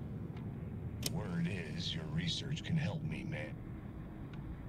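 A man's recorded voice speaks calmly from a cassette radio.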